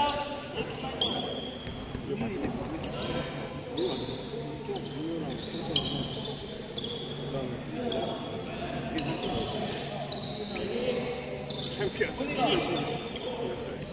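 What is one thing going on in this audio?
Young men call out to each other across the hall.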